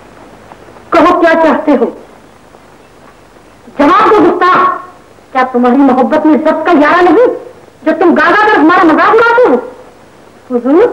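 A woman sings a melodic song in phrases, with a slightly muffled, hissy sound.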